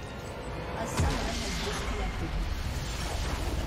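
A large magical explosion booms.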